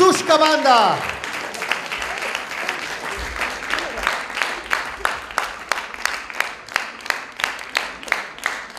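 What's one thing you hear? An audience applauds, settling into steady rhythmic clapping.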